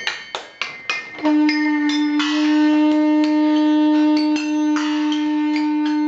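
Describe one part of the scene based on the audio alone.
Small metal bowls are struck by hand and ring out brightly.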